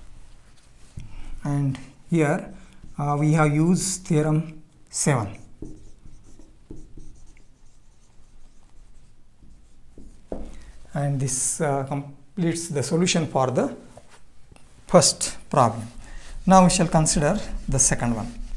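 An older man lectures calmly and clearly, close by.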